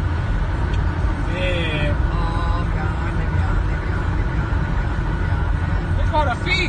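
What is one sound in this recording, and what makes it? A car's engine and tyres roar steadily at high speed on a highway.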